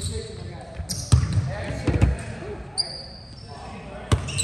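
A basketball bounces with heavy thuds on the court.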